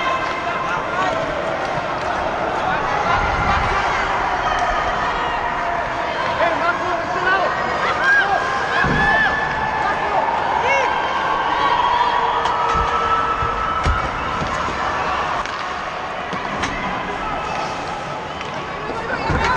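Children's voices shout and chatter in a large echoing rink.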